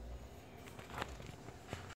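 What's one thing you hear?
Something rubs and knocks against the recording phone close up.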